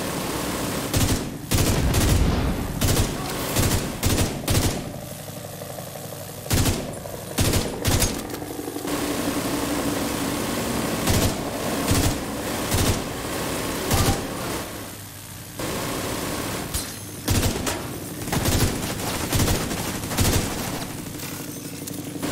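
Gunshots fire in short, sharp bursts.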